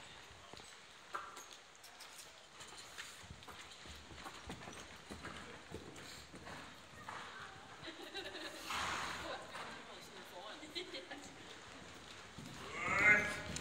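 Hooves thud softly on sand as a horse walks.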